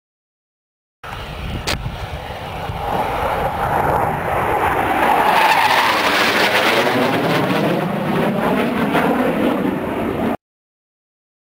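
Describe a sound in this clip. A jet roars overhead, growing louder as it passes and then fading away.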